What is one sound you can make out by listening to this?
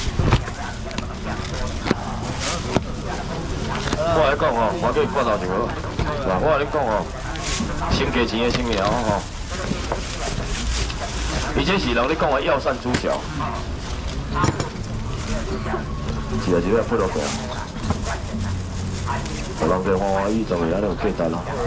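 A busy crowd murmurs in the background.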